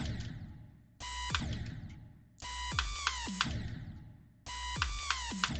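Electronic game music plays in short bursts, cutting off and starting over several times.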